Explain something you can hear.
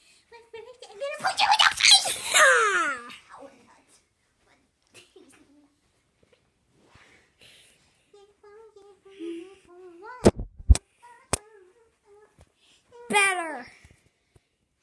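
A young boy shouts with excitement.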